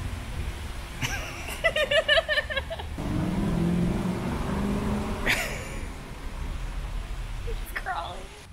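A young woman laughs and talks close by, outdoors.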